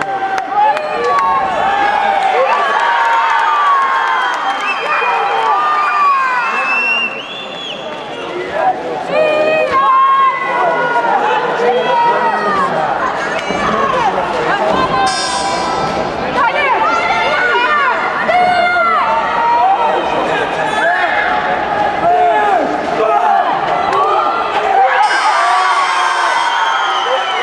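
A crowd shouts and cheers loudly in a large echoing hall.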